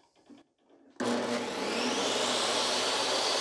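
A table saw motor starts up and whirs loudly and steadily.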